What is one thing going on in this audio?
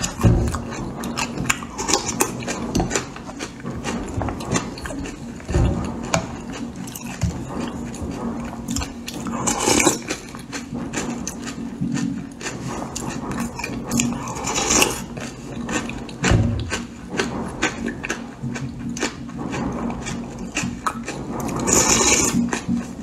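A woman chews and smacks her lips.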